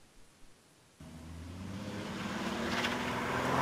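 A car engine roars louder and louder as the car speeds up.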